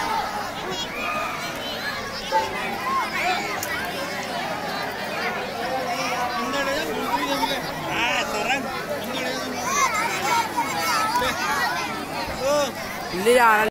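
A man speaks loudly to the crowd.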